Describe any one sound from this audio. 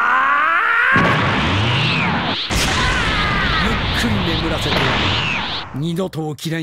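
A powerful energy blast roars and crackles.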